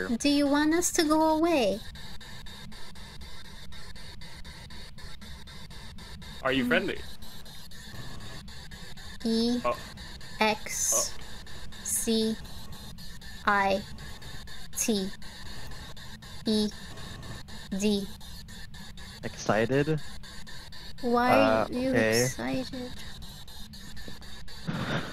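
A young woman talks with animation into a microphone, in short bursts.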